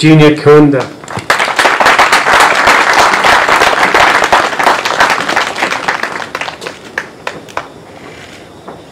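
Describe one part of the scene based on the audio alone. An audience claps and cheers, then the clapping fades.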